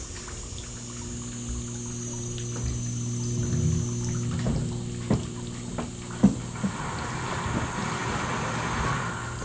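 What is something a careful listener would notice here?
Water trickles and drips from a bamboo spout into a stone basin.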